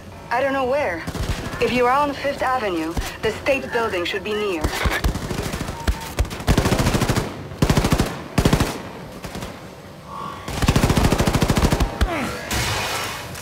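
Automatic guns fire in rapid bursts.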